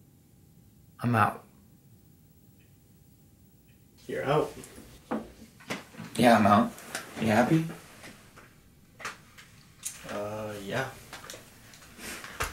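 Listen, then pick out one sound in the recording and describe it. A young man talks in a low, calm voice close by.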